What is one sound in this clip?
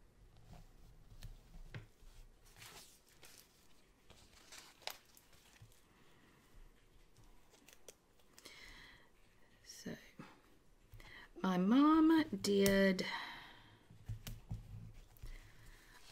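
Fingers rub a sticker down onto paper.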